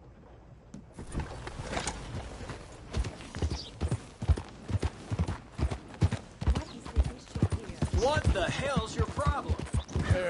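A horse's hooves thud steadily on a dirt road.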